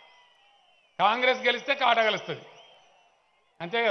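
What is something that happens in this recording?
A man speaks forcefully into a microphone over loudspeakers, echoing outdoors.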